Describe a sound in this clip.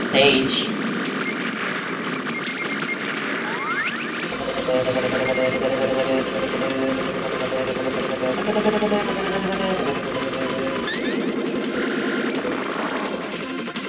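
Fast electronic game music plays with a steady beat.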